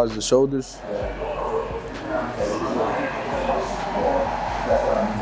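A woman talks in the background.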